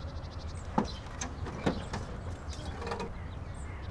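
A heavy door bangs and creaks open.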